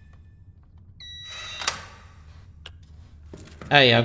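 Electronic keypad buttons beep.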